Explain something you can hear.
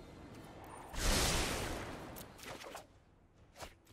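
A game sound effect whooshes loudly.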